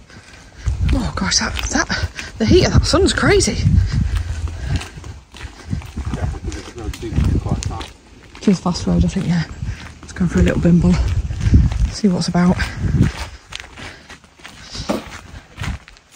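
Footsteps scuff along a paved road.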